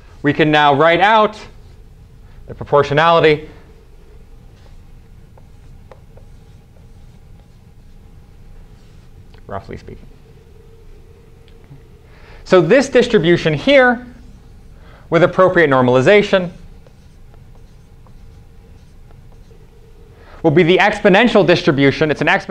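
A man speaks calmly in bursts, with pauses between phrases.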